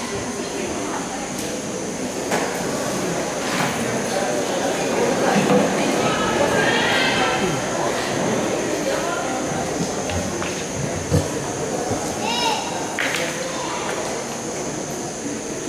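People murmur and chatter nearby.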